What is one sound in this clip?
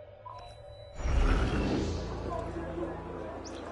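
A deep whoosh swells and fades.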